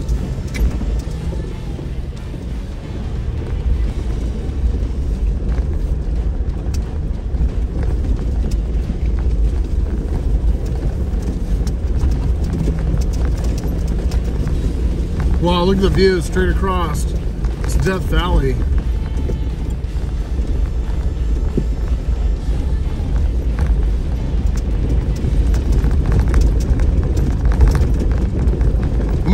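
Tyres crunch over loose rocks and gravel.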